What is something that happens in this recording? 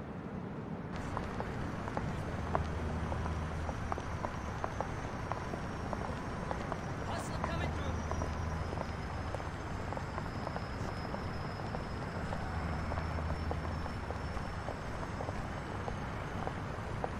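Traffic hums steadily on a city street.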